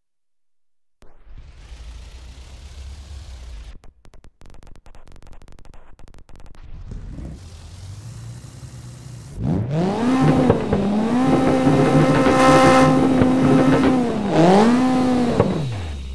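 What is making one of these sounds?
Tyres screech as a car spins its wheels.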